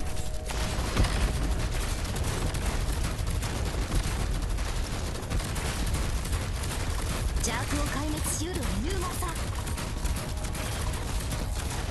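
Explosions and gunfire crackle and thump rapidly in a game.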